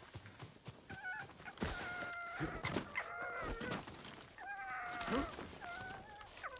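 A fox yips and barks in short, high cries.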